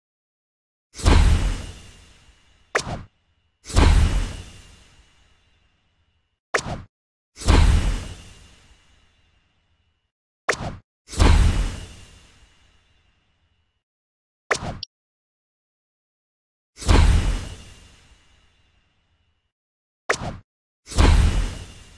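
A magical whoosh bursts out with a shimmering sparkle.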